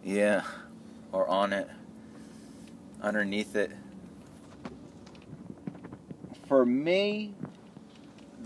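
A car engine hums quietly.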